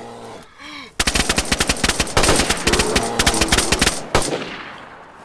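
A rifle fires in rapid bursts, loud and close.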